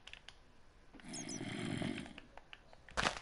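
A zombie groans nearby.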